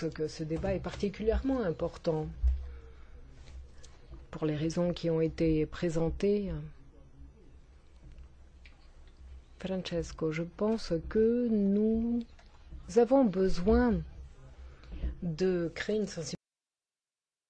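A woman speaks with animation into a microphone, heard close.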